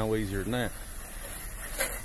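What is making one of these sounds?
Water sprays in a hissing jet onto a metal roof.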